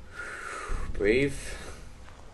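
A young man speaks briefly through a close microphone.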